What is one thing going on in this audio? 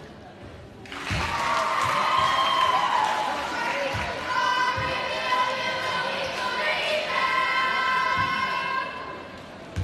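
A crowd cheers and chants in a large echoing gym.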